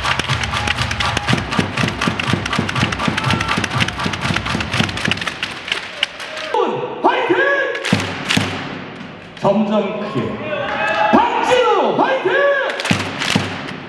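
A large crowd cheers and chants in a big echoing stadium.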